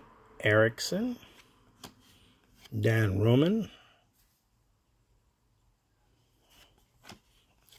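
Stiff cardboard cards slide and tap against each other in hands.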